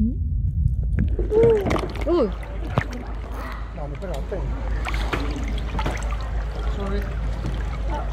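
Water splashes and rushes over rocks close by.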